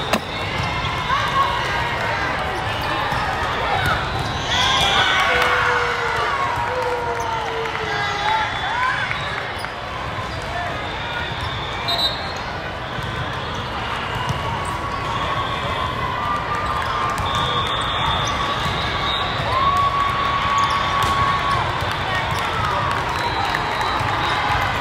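Shoes squeak sharply on a hard court in a large echoing hall.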